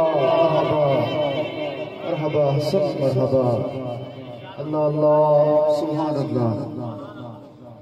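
A man chants melodically into a microphone, heard through loudspeakers in a reverberant space.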